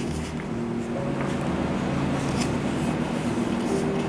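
Book pages rustle as they are flipped quickly.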